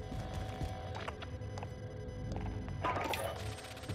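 Soft electronic clicks sound as menu items are selected.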